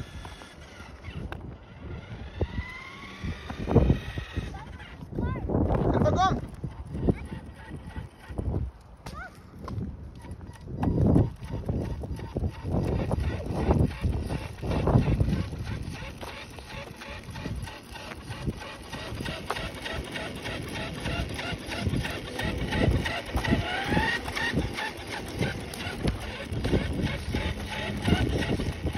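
A toy car's electric motor whines as it drives over pavement.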